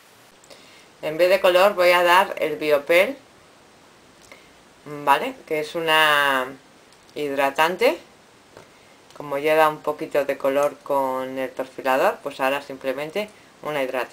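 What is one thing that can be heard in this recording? A woman talks calmly and closely to the listener.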